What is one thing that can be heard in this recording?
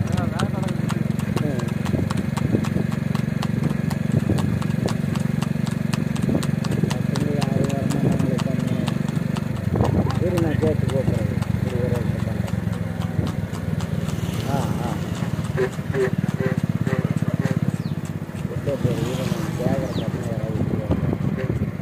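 A horse's hooves clop steadily on a paved road.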